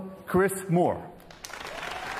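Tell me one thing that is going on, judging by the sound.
A man speaks cheerfully, close by.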